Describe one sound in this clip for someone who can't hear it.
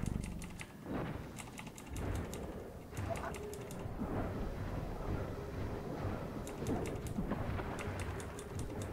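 Blades clash and strike repeatedly in a fierce fight.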